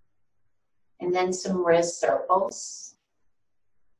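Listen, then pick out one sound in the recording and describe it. An older woman speaks calmly and clearly, close by.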